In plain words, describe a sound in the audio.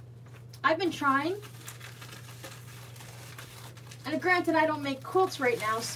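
A plastic mailing envelope crinkles as it is handled.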